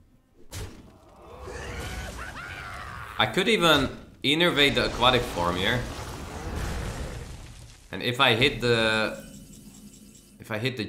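Game effects crash and chime.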